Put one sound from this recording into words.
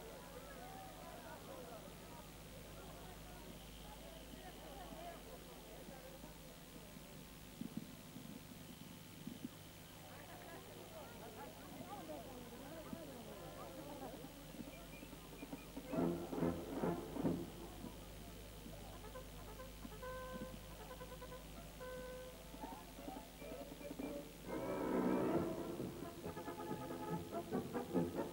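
A crowd of men, women and children chatters outdoors.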